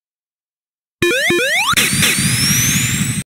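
Electronic game music plays with a fast beat and rising synth sounds.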